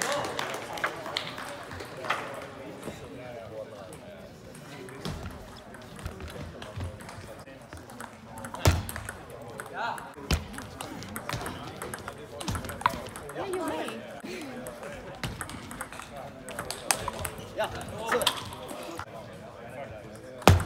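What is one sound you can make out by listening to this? A table tennis ball clicks back and forth between paddles and a table in a large echoing hall.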